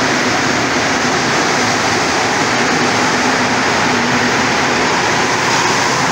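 A rubber-tyred metro train pulls out of an echoing underground station.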